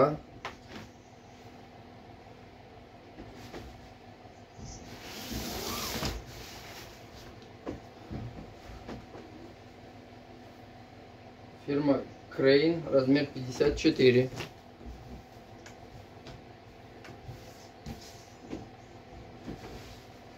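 Fabric rustles and swishes as clothing is handled and laid flat.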